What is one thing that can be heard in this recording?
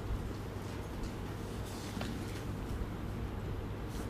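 Pages of a book rustle as they are turned.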